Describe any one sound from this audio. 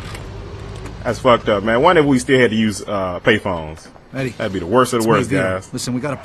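A man speaks over a telephone line.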